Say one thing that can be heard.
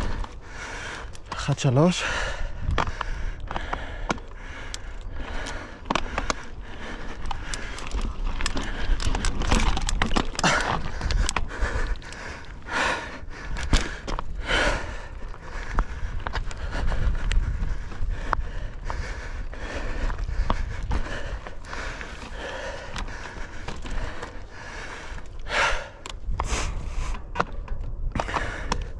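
Mountain bike tyres rumble and crunch over rocky dirt.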